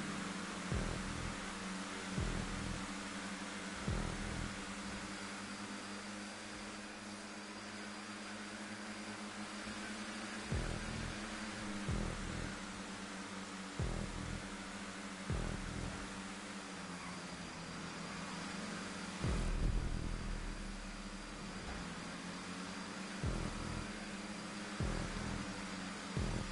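Race car engines roar steadily.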